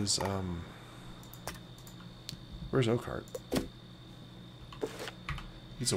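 Short clicks sound as game menu pages turn.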